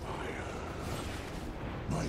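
A bright magical whoosh sweeps past.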